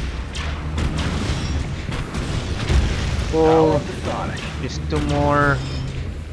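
A laser beam hums and crackles.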